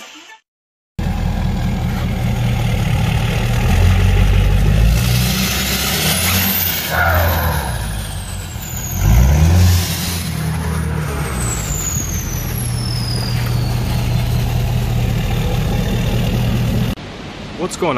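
A diesel truck engine idles with a deep, loud exhaust rumble.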